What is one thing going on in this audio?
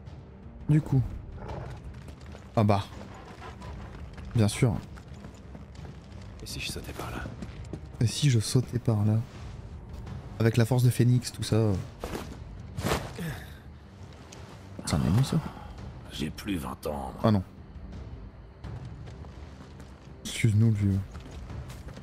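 A young man speaks into a microphone in short bursts.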